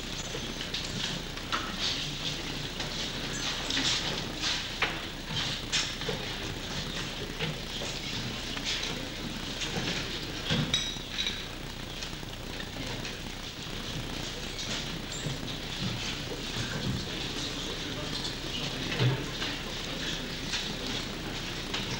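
Footsteps shuffle on a hard floor as a group walks in.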